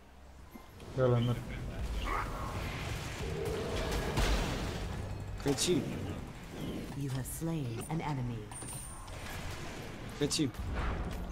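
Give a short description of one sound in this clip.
Game spells whoosh and blast in bursts.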